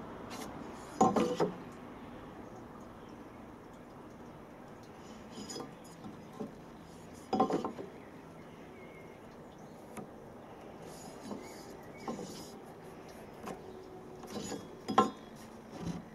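A plastic square knocks against a wooden board.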